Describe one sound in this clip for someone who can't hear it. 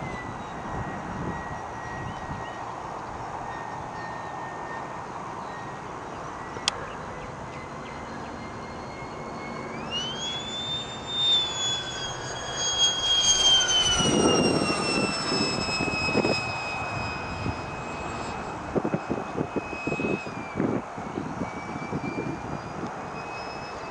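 A model aircraft engine whines overhead, rising sharply in pitch and then slowly falling.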